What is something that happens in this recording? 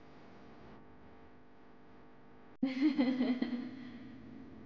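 A young woman laughs softly nearby.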